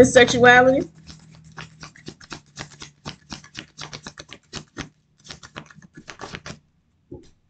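Paper crinkles and rustles in a woman's hands.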